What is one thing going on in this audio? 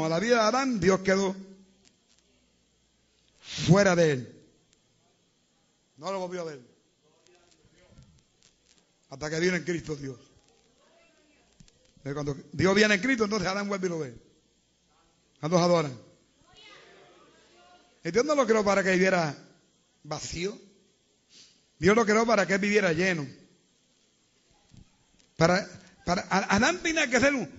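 A man preaches with animation in short bursts, with pauses in between.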